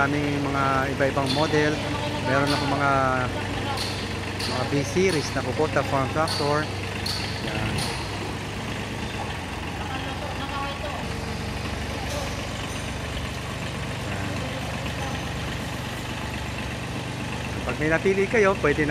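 A small diesel engine idles steadily nearby.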